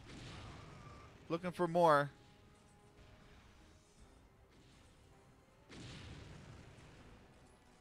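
A laser rifle fires with an electric zap in the distance.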